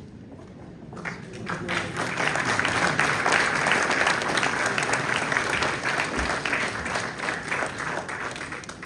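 An audience claps in applause in a large room.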